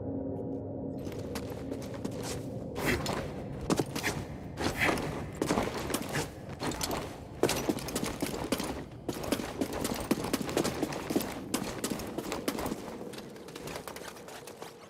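Footsteps thud and scrape quickly on stone.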